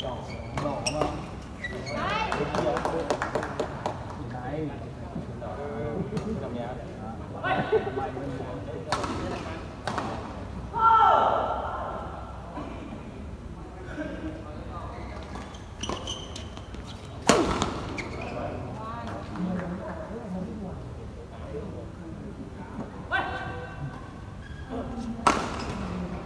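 Men call out during play in a large echoing hall.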